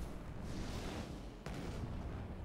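A fiery blast whooshes and roars.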